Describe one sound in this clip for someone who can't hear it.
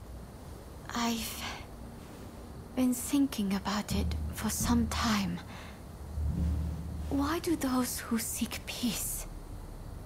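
A young woman speaks softly and thoughtfully, close by.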